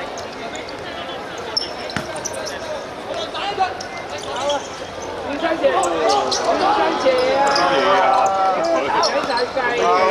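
A football is kicked.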